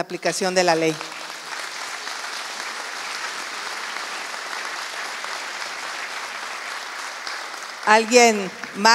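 An audience claps and applauds.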